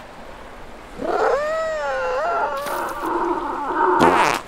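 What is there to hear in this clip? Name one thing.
A cartoon seal lets out a long, wavering, strained whine.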